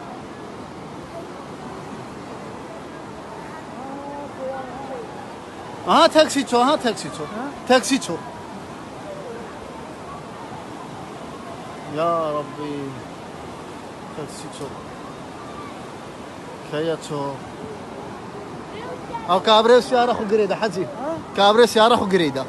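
Floodwater rushes and churns steadily.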